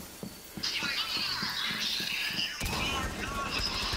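A carbine rifle fires a single shot.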